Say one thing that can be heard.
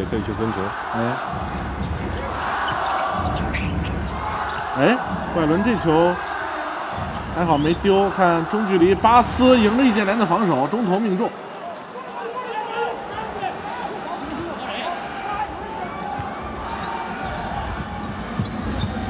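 A crowd in a large arena murmurs and cheers throughout.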